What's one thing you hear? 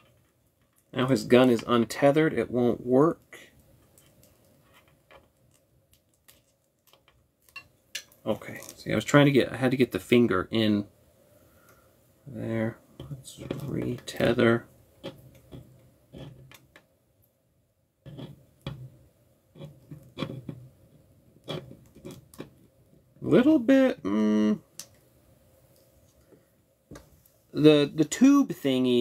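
Small plastic parts click and rattle as hands handle them.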